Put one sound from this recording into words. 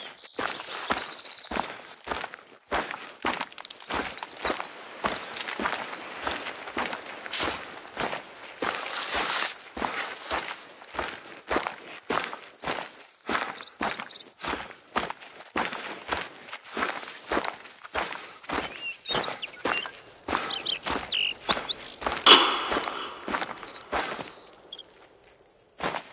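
Footsteps rustle through grass and undergrowth at a steady walking pace.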